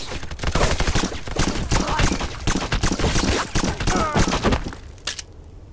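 A pistol fires a quick series of sharp shots.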